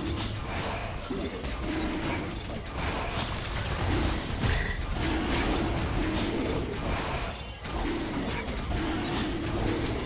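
Magic blasts and hits crackle and whoosh in a video game battle.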